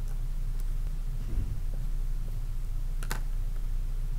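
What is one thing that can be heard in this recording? Paper rustles as a hand brushes over it.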